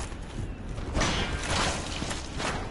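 A heavy weapon strikes flesh with a wet thud.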